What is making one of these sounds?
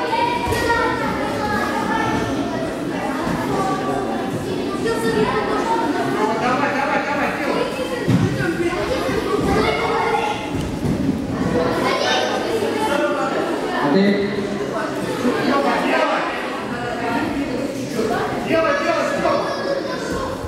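Men shout and call out loudly in an echoing hall.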